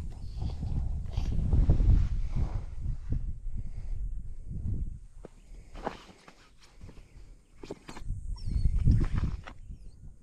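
Footsteps swish softly through grass.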